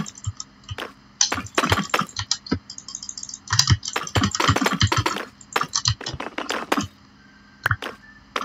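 Stone blocks are set down with short, dull knocks.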